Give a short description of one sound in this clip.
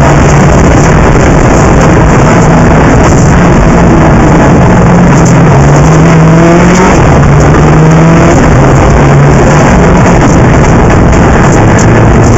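A car engine hums steadily, rising and falling slightly in pitch.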